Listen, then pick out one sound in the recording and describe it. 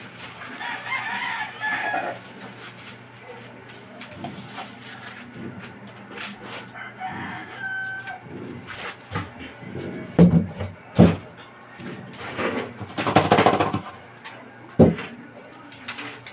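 Ice cubes rattle and crunch as a hand presses them.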